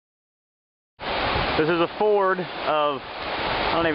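A river rushes and gurgles over rocks.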